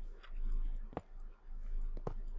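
A block breaks with a short crunch.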